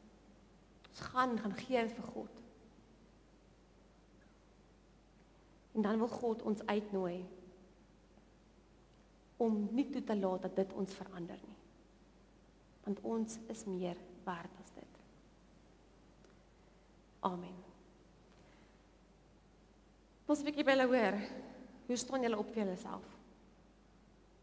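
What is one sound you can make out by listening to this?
A young woman speaks calmly into a microphone in short phrases with pauses.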